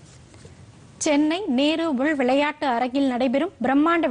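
A young woman reads out news clearly and calmly into a close microphone.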